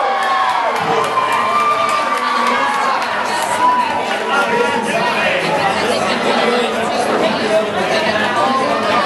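A large crowd chatters and cheers in a large echoing hall.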